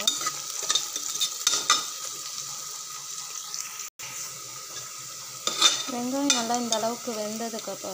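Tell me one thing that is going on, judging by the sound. Onions sizzle and crackle as they fry.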